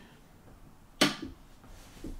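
A door clicks shut close by.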